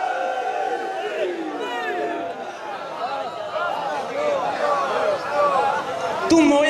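A crowd of men chants together in response.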